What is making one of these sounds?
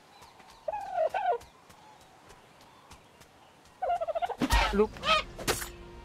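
A bird squawks in short, shrill bursts.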